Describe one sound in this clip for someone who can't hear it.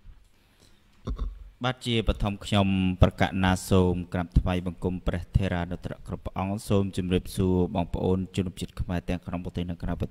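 A young man speaks into a microphone over an online call.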